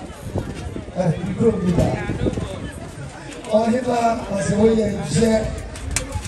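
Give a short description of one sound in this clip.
A man speaks through a microphone and loudspeaker.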